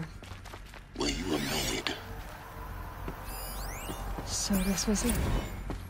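Electronic glitchy tones sweep up and down.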